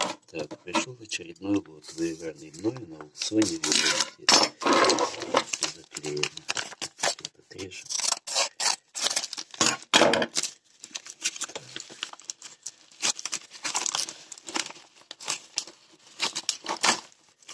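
A paper envelope crinkles and rustles in hands.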